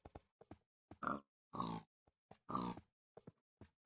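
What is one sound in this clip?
A wolf whines and pants nearby.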